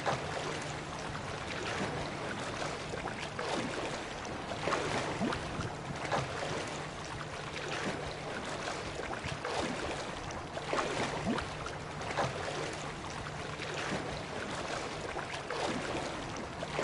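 Waves slosh and splash steadily close by.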